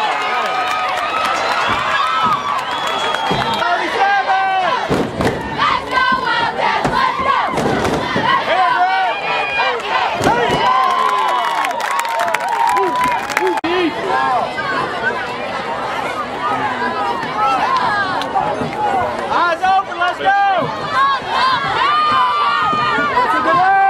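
A crowd of spectators and young players shouts and cheers outdoors.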